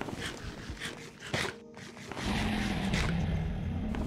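Crunchy chewing sounds repeat quickly.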